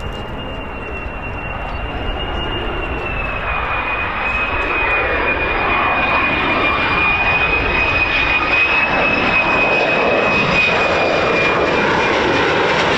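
A jet engine whines with a high steady tone.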